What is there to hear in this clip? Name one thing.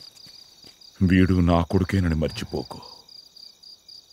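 An elderly man speaks in a low, grave voice.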